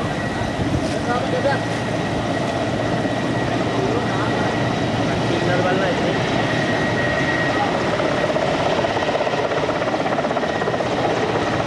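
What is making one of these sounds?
A helicopter flies by with a thudding drone.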